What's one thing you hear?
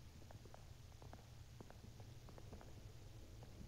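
Footsteps echo on a hard floor.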